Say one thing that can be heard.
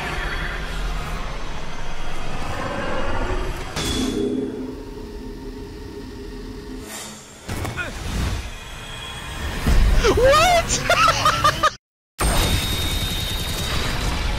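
A crackling energy blast roars and rumbles.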